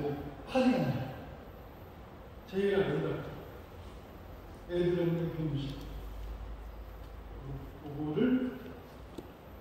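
A man speaks through a microphone in bursts, heard over loudspeakers in a large echoing hall.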